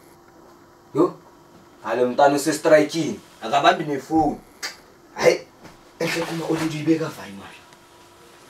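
A boy talks on a phone with animation.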